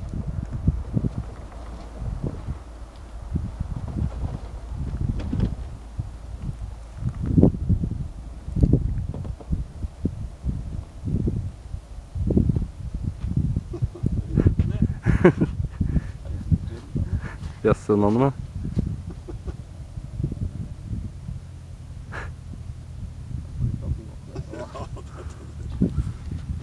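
Wind buffets loudly against the microphone outdoors.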